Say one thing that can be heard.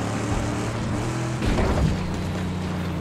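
An exhaust flame bursts with a loud whoosh.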